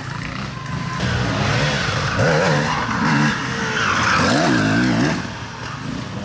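A dirt bike engine revs up and down nearby.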